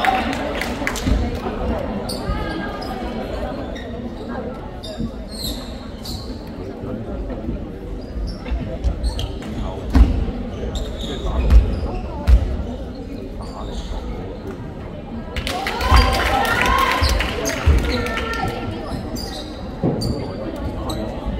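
Spectators chatter in a large echoing hall.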